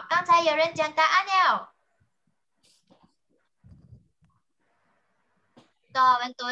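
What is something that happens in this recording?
A young child speaks with animation over an online call.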